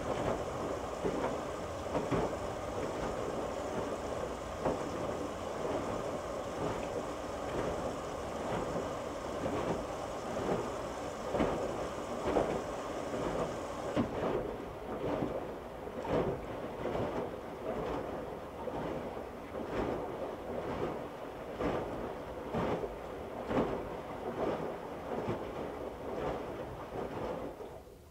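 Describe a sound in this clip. Wet laundry thumps and flops against the drum.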